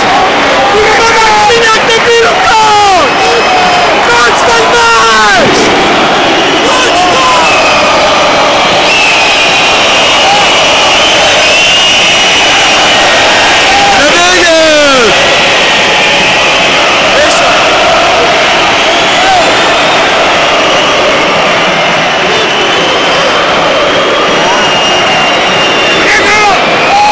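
A large stadium crowd roars and chants loudly in a wide open space.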